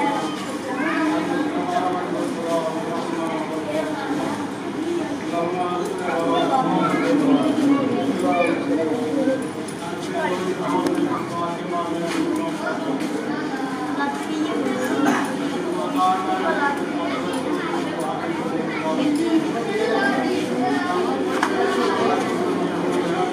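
A crowd of men chants together in an echoing room.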